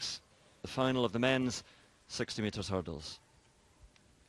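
A man calls out commands firmly over a loudspeaker in a large echoing hall.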